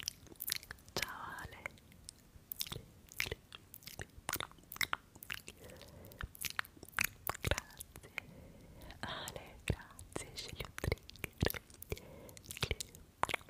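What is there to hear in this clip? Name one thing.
A young woman whispers softly into a close microphone.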